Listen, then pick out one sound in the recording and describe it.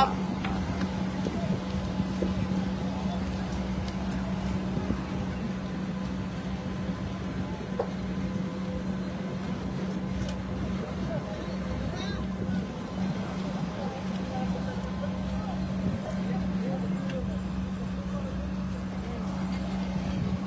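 Burning debris crackles and pops.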